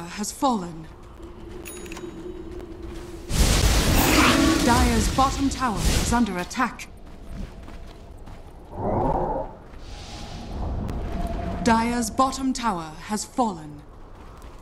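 A young woman talks with animation, close to a microphone.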